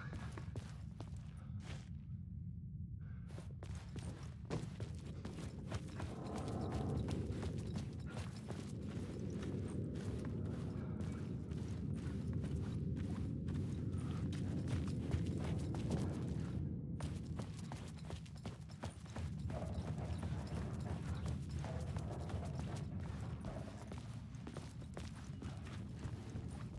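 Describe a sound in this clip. Footsteps crunch slowly on gritty ground.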